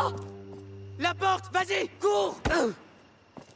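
A young man shouts urgently.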